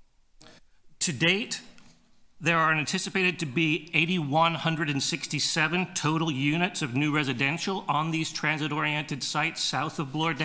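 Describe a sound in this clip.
A middle-aged man speaks steadily into a microphone, reading out.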